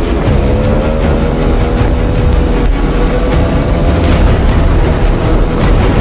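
Motorcycle engines drone steadily.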